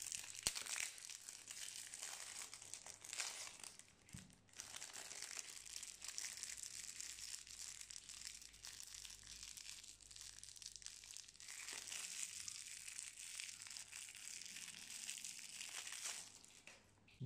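Plastic wrapping crinkles and rustles as it is torn open.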